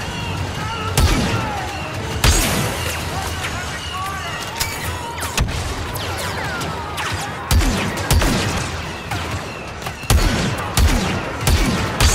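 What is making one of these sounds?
Gunshots ring out with sharp cracks and echoing booms.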